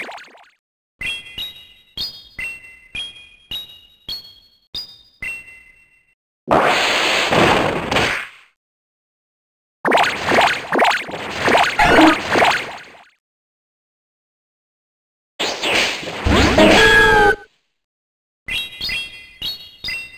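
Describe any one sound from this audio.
Bright chimes ring one after another, stepping up in pitch.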